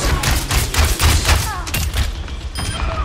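A gun fires rapid shots with sharp bursts.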